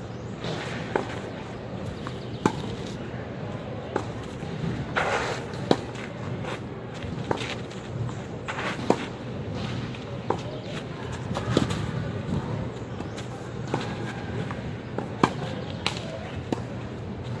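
Tennis shoes scuff and slide on a clay court.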